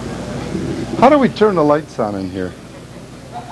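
An elderly man calls out loudly into a microphone.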